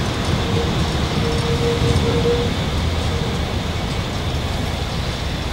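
A tram rumbles past along its tracks.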